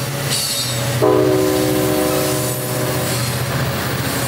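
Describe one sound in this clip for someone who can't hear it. A train horn blares.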